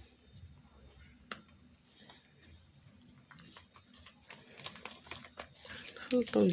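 A hand mixes flour and egg in a glass bowl with soft squelching and scraping.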